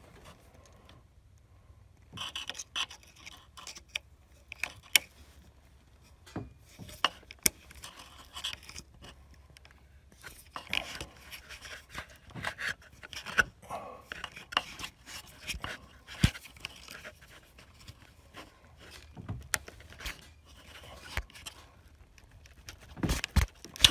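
Fingers click and rattle a plastic ignition coil connector.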